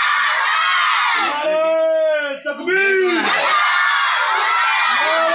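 A crowd of boys chants together outdoors.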